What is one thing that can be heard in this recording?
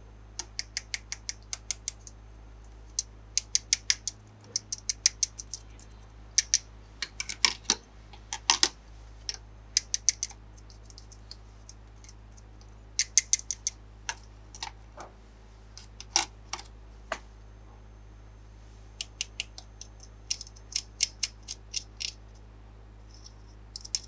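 Plastic toy pieces click and tap together in quick bursts, close by.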